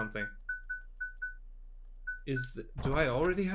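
Short electronic menu beeps sound in quick succession.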